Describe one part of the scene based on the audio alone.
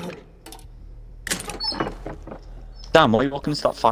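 A wooden chest lid creaks open.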